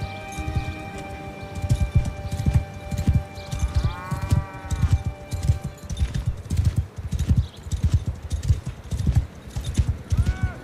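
Horse hooves thud steadily on soft ground.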